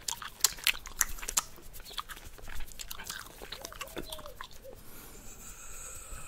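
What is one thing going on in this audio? A man makes wet mouth clicks and pops close to a microphone.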